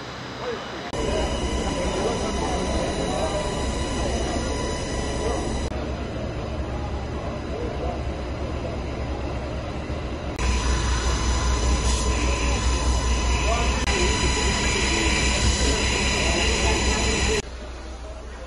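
A fire engine's motor hums steadily nearby.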